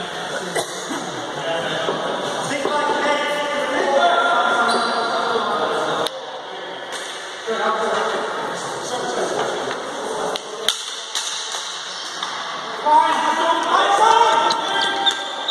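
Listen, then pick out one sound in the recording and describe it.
Hockey sticks clack against the ball and the floor.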